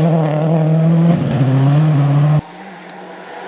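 A rally car engine roars loudly at high revs close by.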